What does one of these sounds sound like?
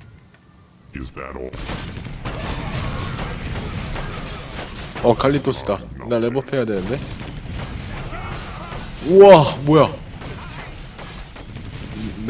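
Weapons clash and thud in a fight.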